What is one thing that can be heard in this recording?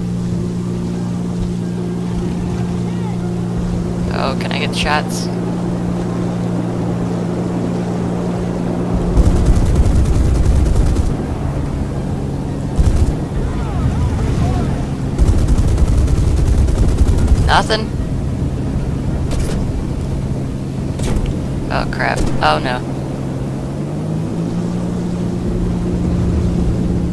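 The twin piston engines of a fighter plane drone.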